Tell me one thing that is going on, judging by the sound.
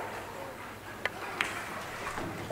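A cue tip strikes a pool ball with a short, sharp click.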